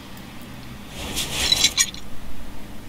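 A ratchet wrench clicks as a bolt is undone.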